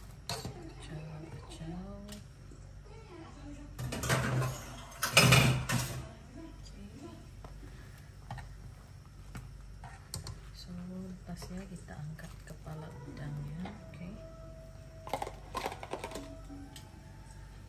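A metal strainer scrapes and clinks against a pot.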